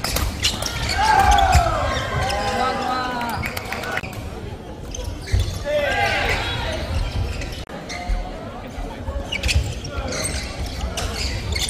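Sports shoes squeak sharply on a court floor.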